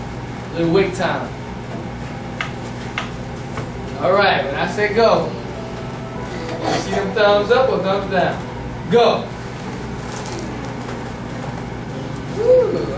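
A man speaks with animation, heard from across a room.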